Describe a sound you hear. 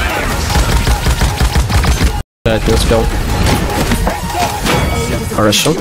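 Rapid gunshots fire in a video game.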